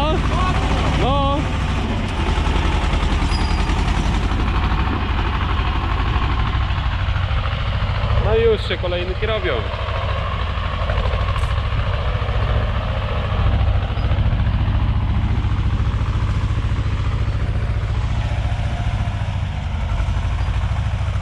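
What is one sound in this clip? A plough turns over soil with a soft crunching.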